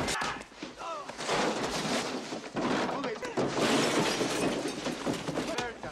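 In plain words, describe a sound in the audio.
A man in his middle years shouts with animation.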